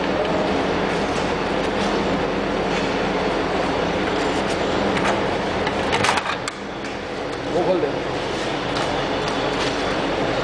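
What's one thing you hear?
A machine hums and rattles steadily.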